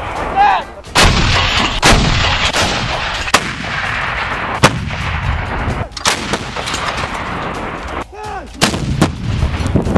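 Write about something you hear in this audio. Artillery guns fire with loud booming blasts that echo outdoors.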